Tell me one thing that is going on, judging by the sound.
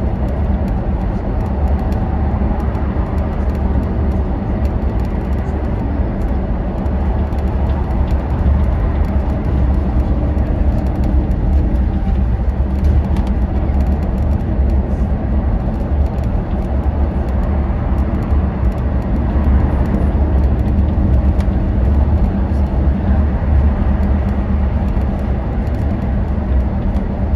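An engine hums steadily at speed.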